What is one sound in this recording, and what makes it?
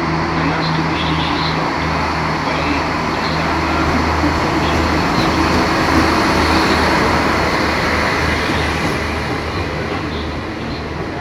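A diesel train engine hums and rumbles close by.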